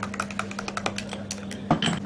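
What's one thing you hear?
A spoon stirs and clinks in a glass.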